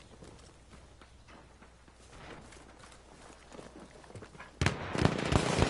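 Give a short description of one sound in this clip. Footsteps tread on wooden boards.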